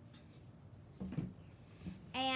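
A wooden board is set down on a table with a knock.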